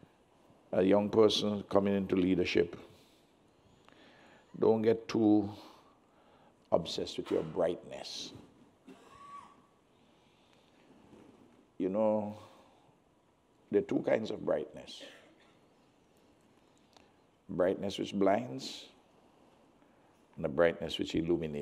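An elderly man speaks calmly and deliberately through a microphone, with pauses between phrases.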